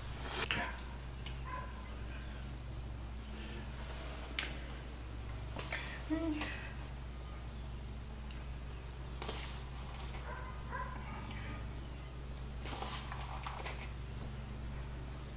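An elderly woman talks calmly and close to a microphone.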